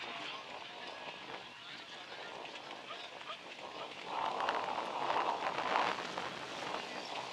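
Carriage wheels roll and rattle over dirt.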